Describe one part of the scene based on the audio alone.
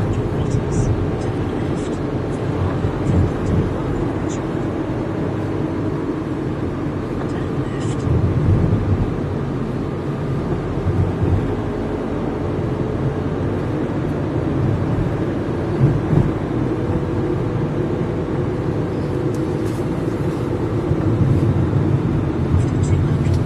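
A car engine rumbles close by as the car drives along.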